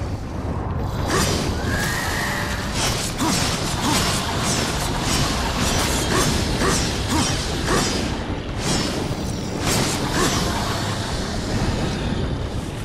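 A sword swishes and clashes in rapid strikes.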